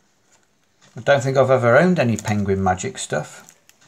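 Plastic wrapping crinkles.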